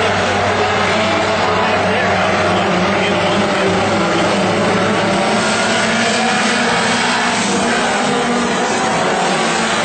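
Dirt-track modified race cars roar past at full throttle.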